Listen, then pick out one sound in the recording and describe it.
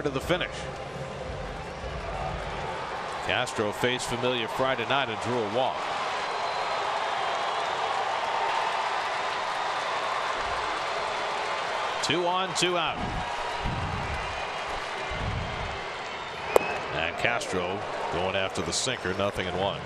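A crowd murmurs steadily in a large open stadium.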